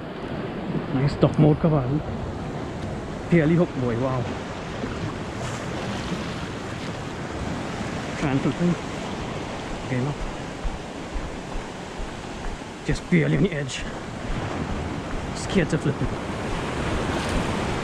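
Small waves lap and splash against a stone edge.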